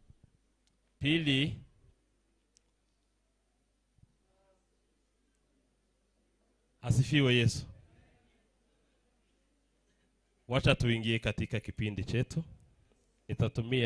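A man speaks through a microphone in bursts, with pauses between phrases.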